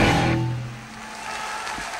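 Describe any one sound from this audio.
A rock band plays loudly through large loudspeakers.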